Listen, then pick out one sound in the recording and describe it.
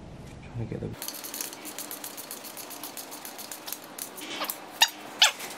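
A ratchet clicks rapidly.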